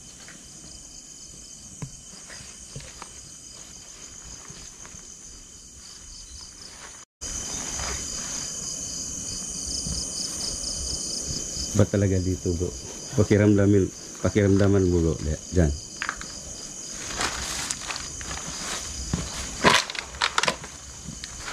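Footsteps brush through grass and weeds.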